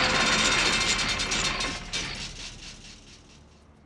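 A large clock bell chimes loudly and rings out.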